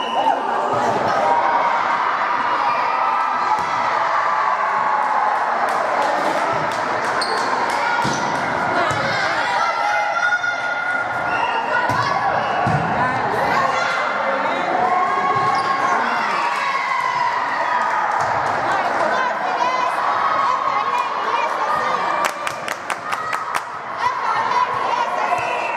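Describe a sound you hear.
A volleyball is struck by hands.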